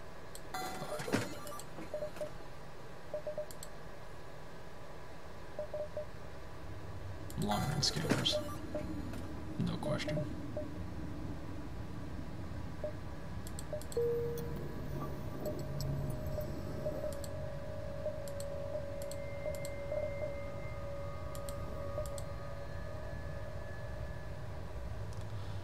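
Game menu buttons click and beep.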